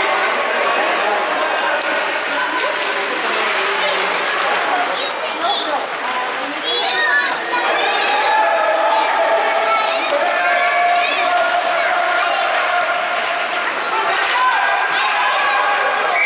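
Hockey sticks clack against the ice and a puck.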